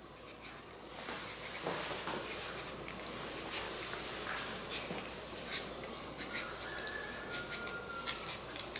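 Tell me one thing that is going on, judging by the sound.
A knife scrapes and shaves the skin of a cucumber with soft, rapid scratching.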